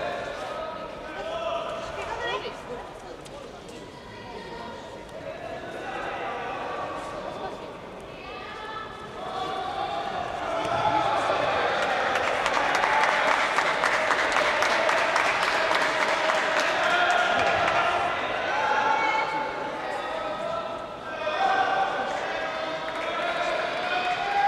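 Men shout in an echoing hall.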